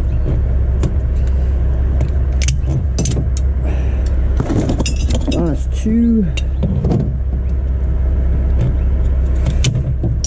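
Glass bottles clink and rattle.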